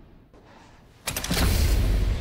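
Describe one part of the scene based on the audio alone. A heavy lever clanks down.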